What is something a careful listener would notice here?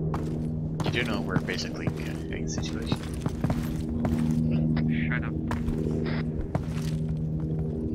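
Footsteps tread on cobblestones.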